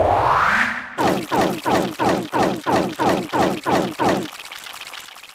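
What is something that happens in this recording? Cartoon creatures pop up one after another with quick, falling boings.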